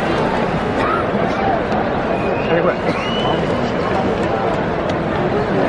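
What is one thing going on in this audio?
A large stadium crowd chatters and cheers in a wide, echoing space.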